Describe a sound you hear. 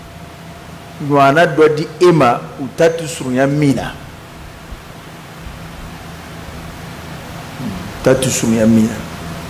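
A man preaches into a microphone in a slow, chanting voice, heard through a loudspeaker in an echoing hall.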